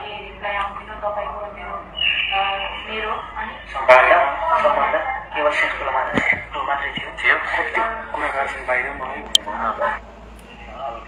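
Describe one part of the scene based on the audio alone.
A young man talks through a phone microphone.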